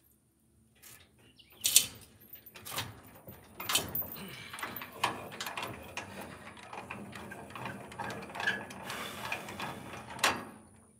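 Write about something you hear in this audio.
A man knocks and clatters tools on a workbench.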